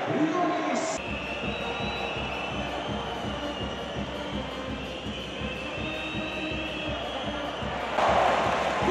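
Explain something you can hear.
A brass band plays loudly.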